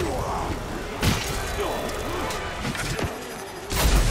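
Sword blows clash and thud.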